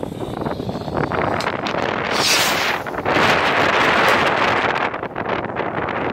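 A rocket whooshes up into the sky.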